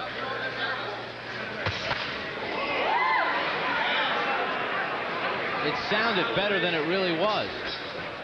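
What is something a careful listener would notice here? Boxing gloves thump as punches land.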